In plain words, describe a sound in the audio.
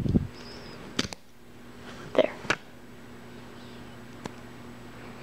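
Rubber bands and plastic pegs click and rustle softly under fingers.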